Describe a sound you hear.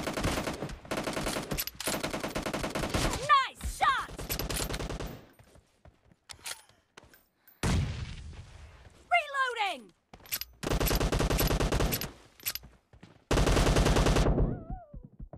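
Rapid gunshots fire in bursts.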